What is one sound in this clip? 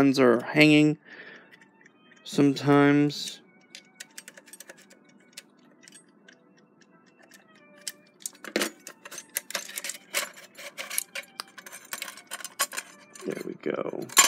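A small screwdriver scrapes and clicks against a metal clock case.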